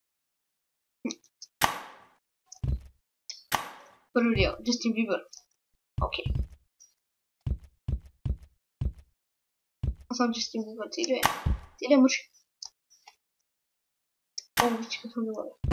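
Springy thuds of a pogo stick bounce along in a game.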